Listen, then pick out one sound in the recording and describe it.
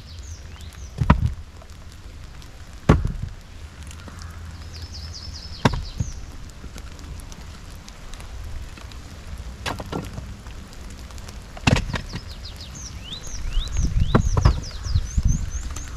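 Logs knock together as firewood is stacked.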